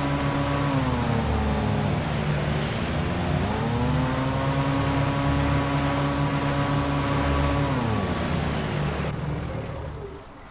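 A boat motor drones steadily, dipping and rising in pitch.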